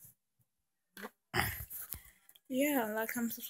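Handling noise rustles against the microphone.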